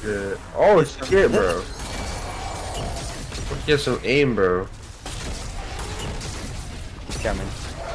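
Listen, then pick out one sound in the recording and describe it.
An energy weapon fires buzzing zaps.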